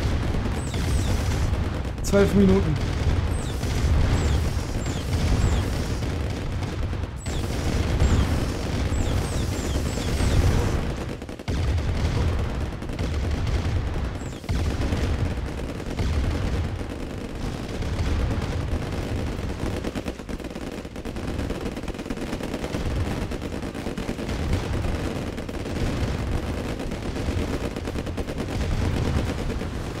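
Tank cannons fire in quick bursts during a battle.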